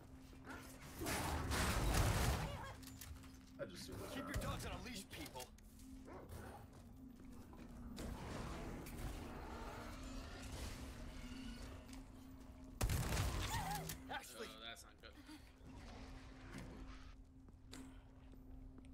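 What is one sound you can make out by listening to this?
Gunshots crack from a game.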